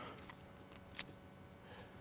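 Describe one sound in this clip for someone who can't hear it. A pistol's slide clicks sharply as it is reloaded.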